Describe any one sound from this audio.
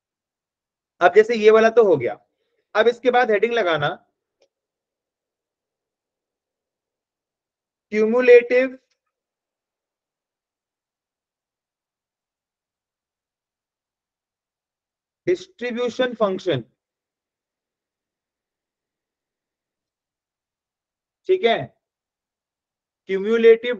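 A young man speaks calmly through a microphone, in short phrases with pauses.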